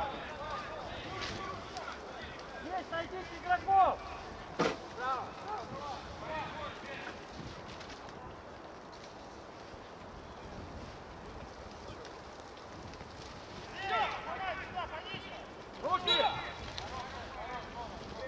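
Football players shout to each other across an open field.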